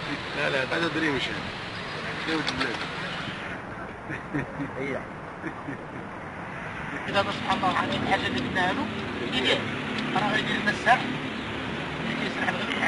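A middle-aged man talks cheerfully close by.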